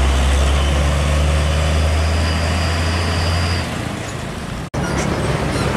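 A heavy truck's diesel engine rumbles as it drives away.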